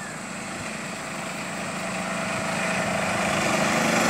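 An auto-rickshaw engine putters by.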